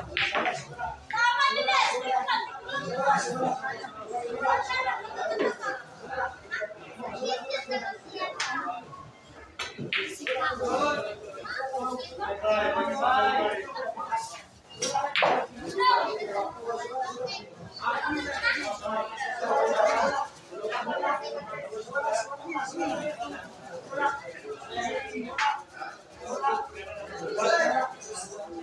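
Several men and boys talk and call out loudly nearby.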